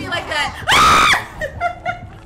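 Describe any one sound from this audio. A young woman screams loudly.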